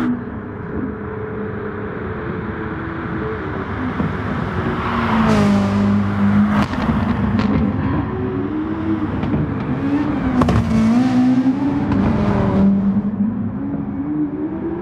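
A race car engine roars loudly, its pitch rising and falling as it shifts gears.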